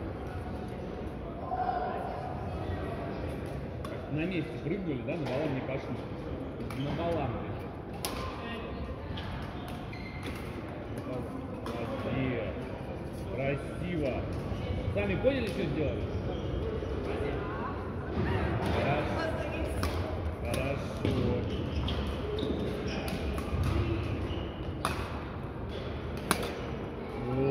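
Rackets sharply hit a shuttlecock back and forth in a large echoing hall.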